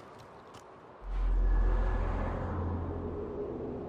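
Air rushes loudly past a diving figure.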